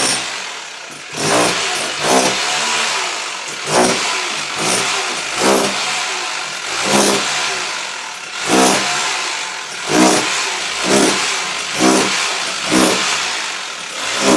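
A power chisel hammers loudly at a wall in repeated short bursts.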